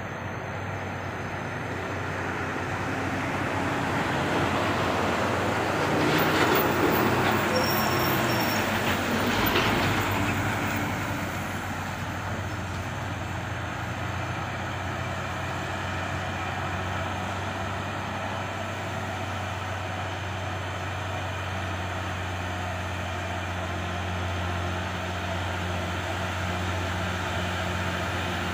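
Heavy truck engines rumble steadily as trucks climb a road.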